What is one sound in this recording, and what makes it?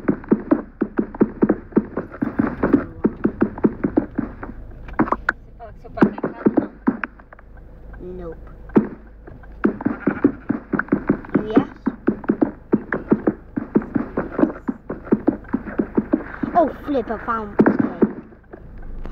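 A pickaxe chips rapidly at stone blocks, with blocks crumbling.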